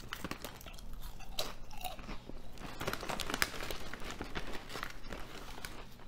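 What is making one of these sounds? A man crunches loudly on a crisp chip close by.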